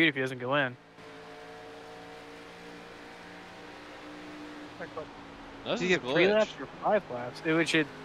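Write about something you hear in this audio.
A race car engine drones steadily.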